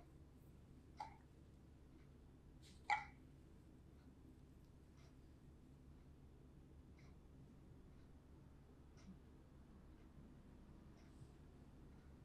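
Small metal tools click and tap softly.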